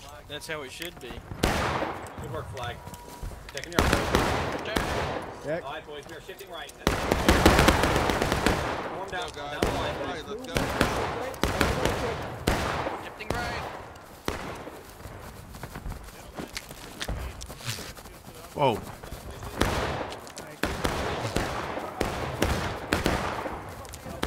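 Musket shots crack and boom repeatedly nearby and in the distance.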